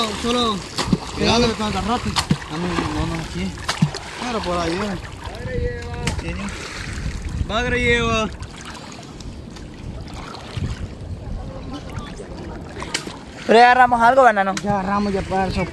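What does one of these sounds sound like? Water swirls and laps around people wading.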